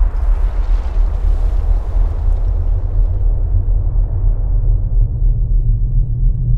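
A strong wind roars with a deep, steady rumble.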